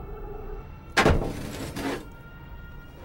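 A heavy metal hatch clanks open.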